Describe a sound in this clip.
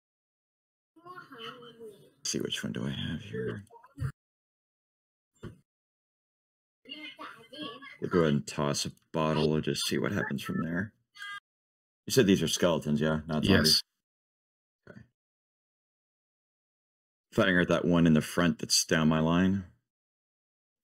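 A man speaks over an online call in bursts, with animation.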